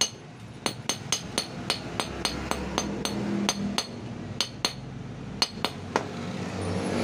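A hammer taps sharply on a metal ring in quick, ringing blows.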